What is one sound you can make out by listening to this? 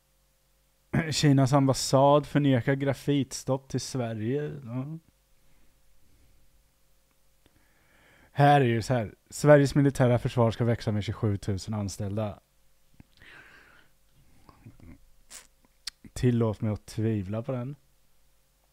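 A person talks close into a microphone.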